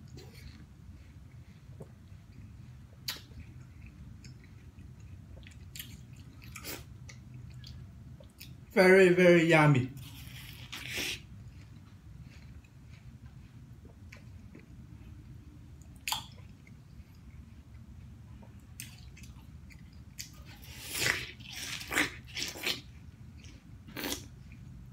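A young man bites and chews juicy watermelon close by.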